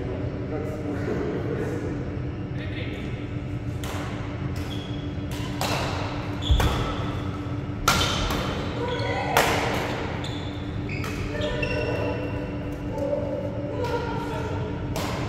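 Badminton rackets hit a shuttlecock with sharp pops that echo around a large hall.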